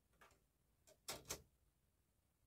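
A disc tray slides shut with a soft click.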